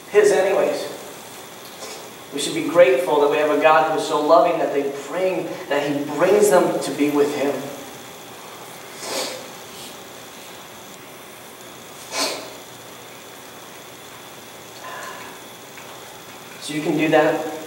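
A man speaks calmly through a microphone in a room with a slight echo, pausing at length.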